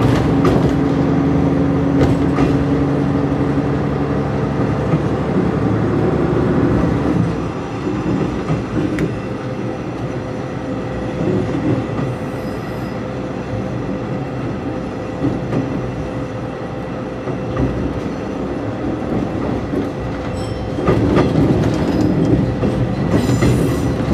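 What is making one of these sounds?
Train wheels clack over rail joints and points.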